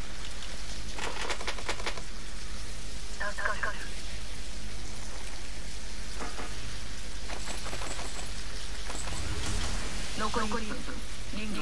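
Electricity crackles and zaps in short bursts.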